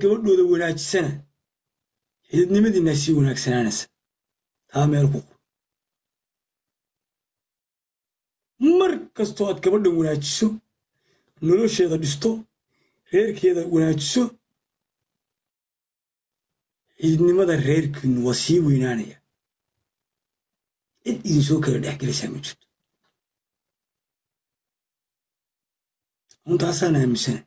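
A young man speaks with animation close to a microphone, in short bursts with pauses.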